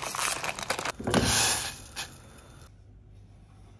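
Water bubbles and hisses in a pot.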